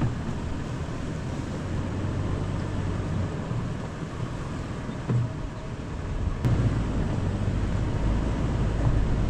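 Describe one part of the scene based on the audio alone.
A vehicle engine rumbles steadily while driving slowly.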